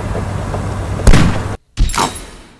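A machine gun fires a short burst.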